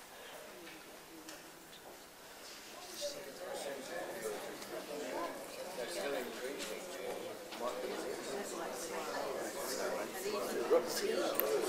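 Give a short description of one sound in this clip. A man speaks calmly through a microphone in an echoing room.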